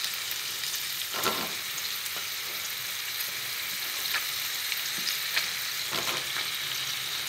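Eggplant pieces drop into a metal pot with soft thuds.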